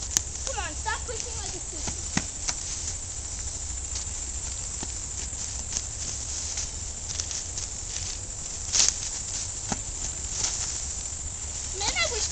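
A young child shouts and squeals excitedly close by.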